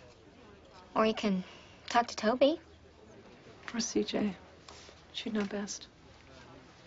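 A young woman speaks calmly and quietly nearby.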